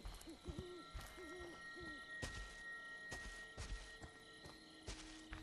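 Heavy footsteps thud slowly on leafy ground outdoors.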